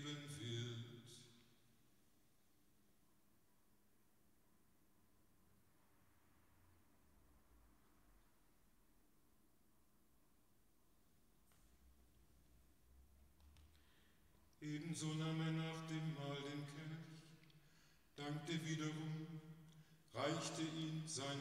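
An elderly man sings slowly through a microphone in an echoing hall.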